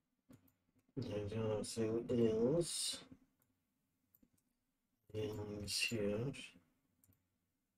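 A man speaks calmly into a microphone, close by, in two short bursts.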